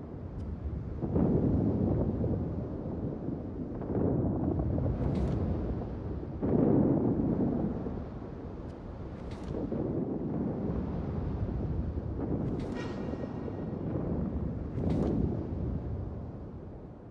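Heavy naval guns boom in rolling blasts over open water.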